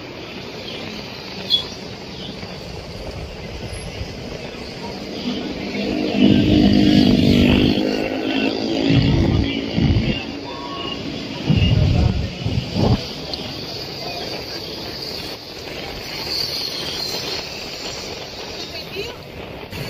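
Motorcycle engines hum and rumble close by.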